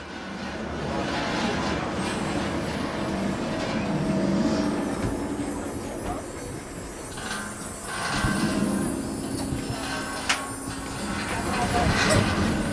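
A bus engine rumbles steadily while the bus drives.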